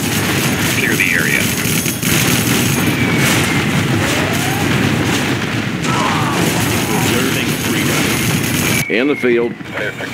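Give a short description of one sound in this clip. Helicopter rotors thump steadily.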